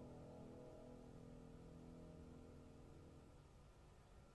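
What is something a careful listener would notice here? Strings and a piano play a soft, sustained chord that then stops.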